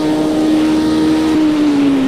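A racing car engine drones at a steady pitch.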